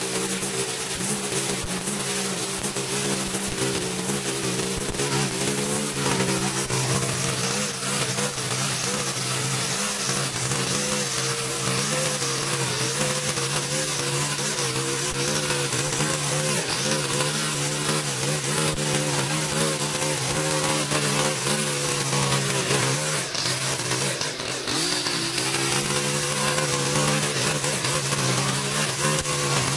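The nylon line of a string trimmer swishes and slaps through tall grass.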